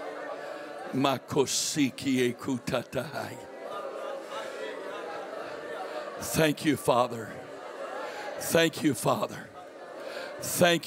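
A middle-aged man speaks forcefully through a microphone and loudspeakers.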